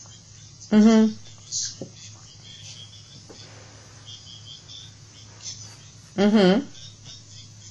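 A man speaks in short bursts through an online call.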